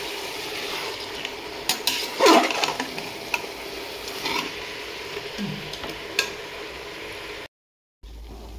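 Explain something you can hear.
Food sizzles in a hot pot.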